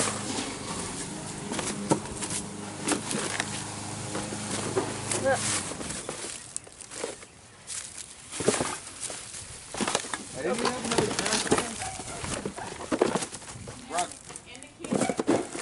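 Footsteps crunch on dry leaves and crumpled cans.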